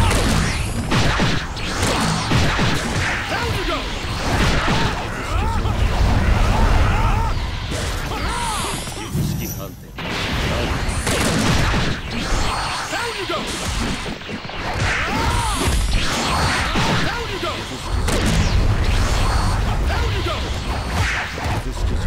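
Punches and kicks land with sharp thuds and smacks.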